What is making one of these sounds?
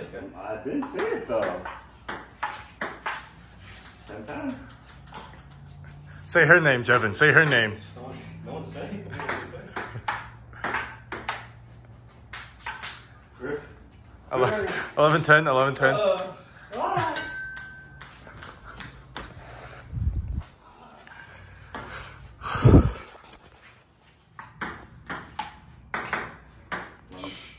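A ping-pong ball clicks sharply back and forth off paddles and a table.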